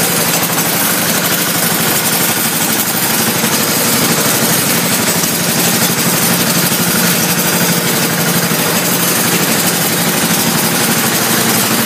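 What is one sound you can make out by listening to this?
An engine runs steadily with a loud, hissing roar.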